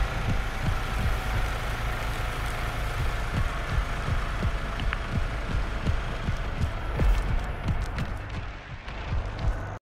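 Footsteps run across the ground.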